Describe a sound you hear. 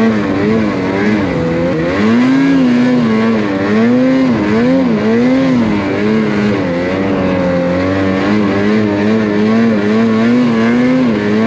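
A snowmobile engine roars close by, rising and falling in pitch as it revs.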